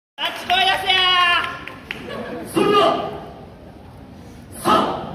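A group of young women shout and chant together in a large echoing hall.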